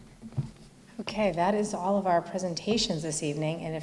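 A woman speaks into a microphone with animation.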